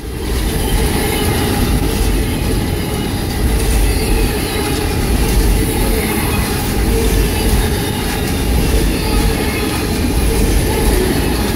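Steel wheels squeal and rattle on the rails.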